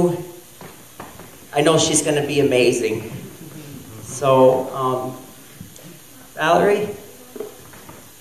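A middle-aged man speaks warmly into a microphone in an echoing room.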